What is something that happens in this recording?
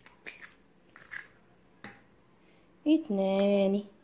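An egg cracks against a bowl.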